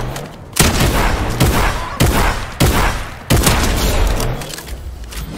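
Gunshots boom in quick bursts.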